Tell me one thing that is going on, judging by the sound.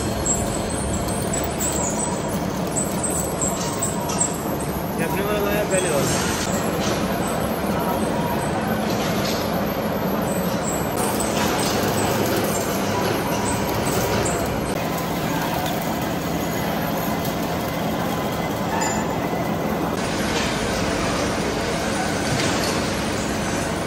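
A cutting tool scrapes and grinds against metal.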